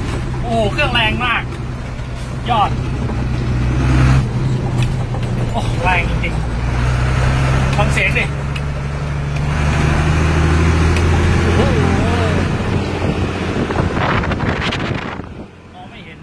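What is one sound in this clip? A vehicle engine hums steadily and then goes quiet.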